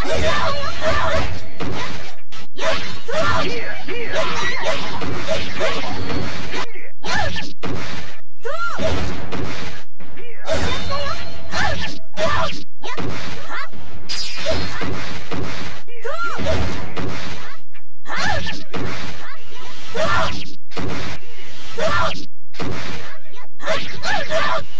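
Swords clash and slash in a video game fight.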